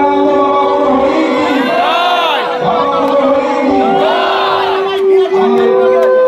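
A crowd of men and women sings a devotional chant together, close by.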